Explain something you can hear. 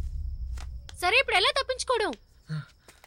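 A young man calls out nearby.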